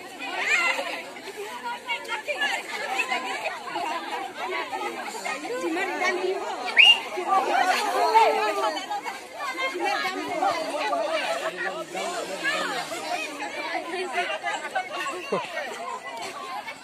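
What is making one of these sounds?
A crowd of women and men chatter and call out outdoors.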